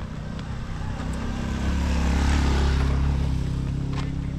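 A motorbike engine hums as it approaches and passes close by.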